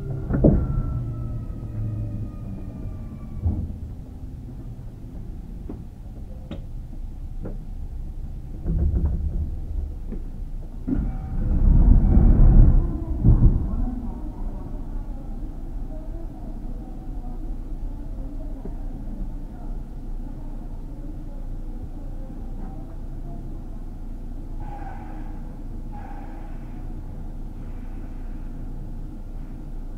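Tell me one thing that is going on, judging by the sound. A stopped electric train hums low and steadily.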